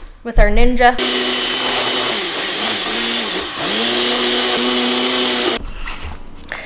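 A blender whirs loudly, steadily blending.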